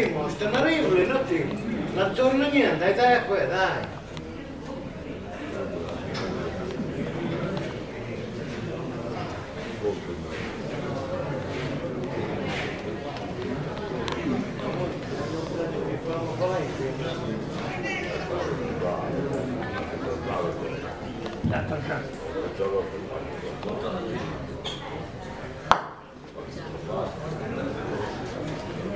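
A crowd of spectators murmurs in a hall.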